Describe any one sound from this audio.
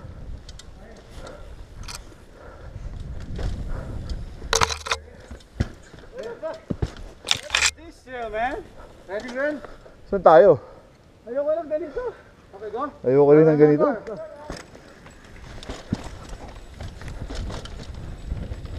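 Bicycle tyres roll and rattle over a rocky dirt trail.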